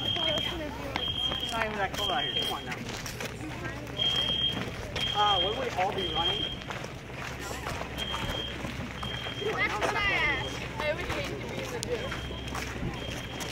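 Footsteps shuffle on dirt and gravel.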